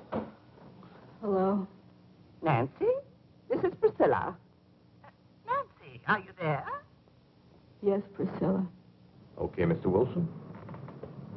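A woman talks calmly into a telephone.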